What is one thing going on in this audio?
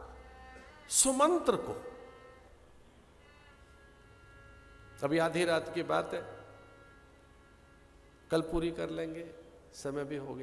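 A middle-aged man speaks expressively into a microphone, in short phrases with pauses.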